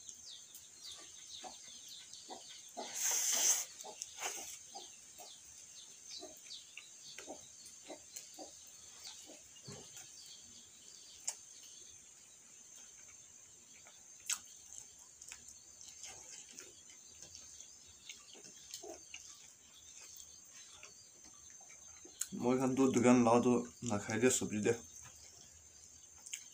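Fingers scrape and squish rice on a metal plate.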